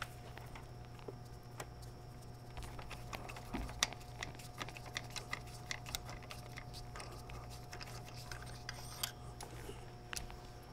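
Metal tools clink and tap against engine parts.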